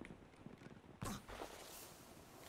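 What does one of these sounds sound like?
A gun fires a short burst of shots.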